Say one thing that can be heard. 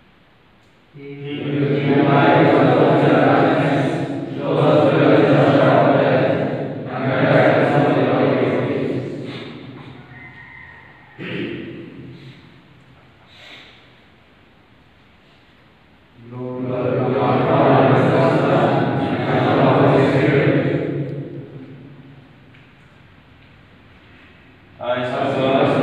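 A group of young men sing or chant together in unison, echoing in a large hall.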